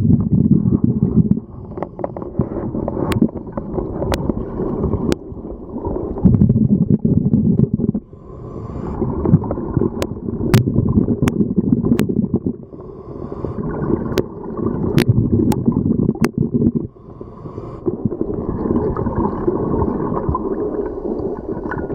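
Breathing through a diving regulator rumbles and bubbles loudly underwater, in slow regular breaths.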